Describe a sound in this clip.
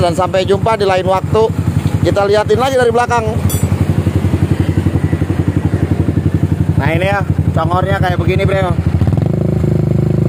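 A motorcycle engine idles with a deep, lumpy throb.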